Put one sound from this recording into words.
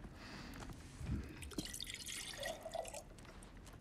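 A cup clinks on a wooden table.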